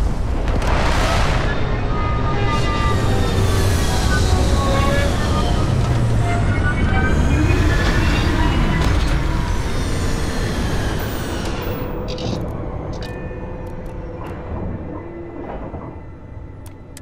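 A spaceship's engines roar loudly as it descends and then slowly fade away.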